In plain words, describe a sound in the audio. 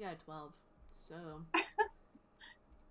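A young woman laughs over an online call.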